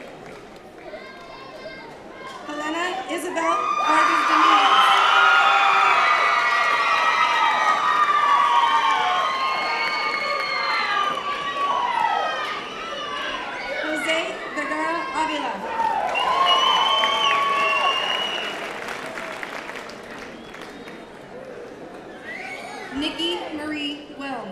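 A woman reads out names over a loudspeaker in a large echoing hall.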